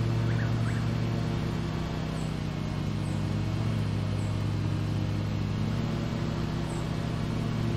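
Blades cut through tall grass with a rough whir.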